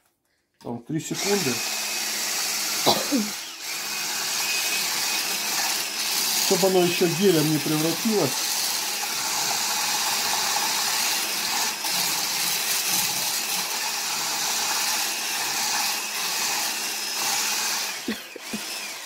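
A hand blender whirs loudly and steadily as it blends a drink.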